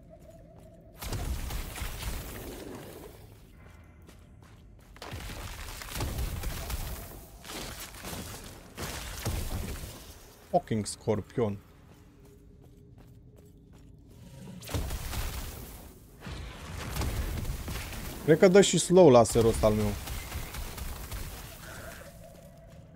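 Game spells crackle and burst with fiery blasts.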